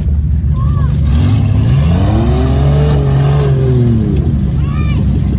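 Mud splashes and sprays against a car.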